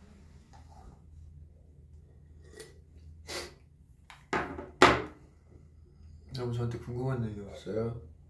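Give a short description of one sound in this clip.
A young man sips and swallows a drink.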